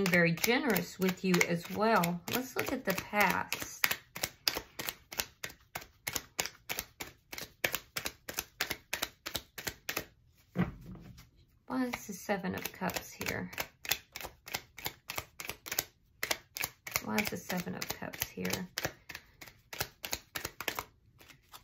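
Playing cards are shuffled with quick, crisp flicks.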